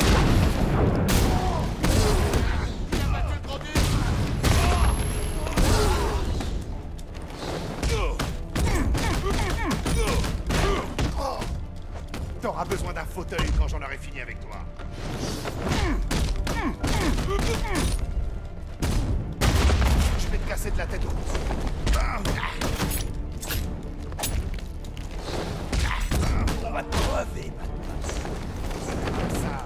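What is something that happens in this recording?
Punches and kicks thud hard and fast in a brawl.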